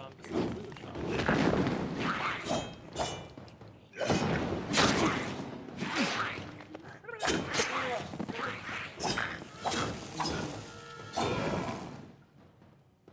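Fire magic bursts with a crackling whoosh.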